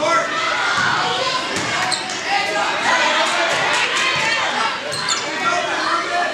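A crowd of spectators chatters throughout a large echoing gym.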